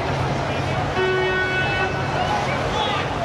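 An emergency vehicle's horn blares briefly.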